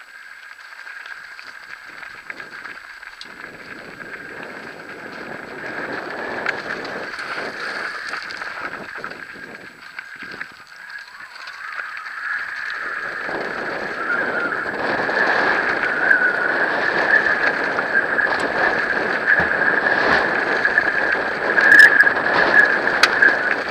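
Wind rushes and buffets loudly, growing stronger as the speed picks up.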